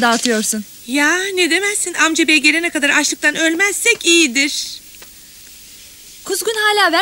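A second woman answers in a lively voice.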